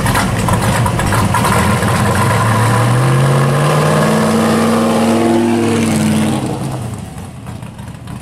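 A classic car's engine rumbles loudly close by and rises in pitch as the car drives past.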